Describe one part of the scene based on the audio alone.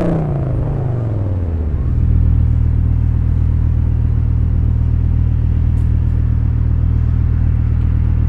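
A car engine winds down from a rev and then idles with a steady low rumble.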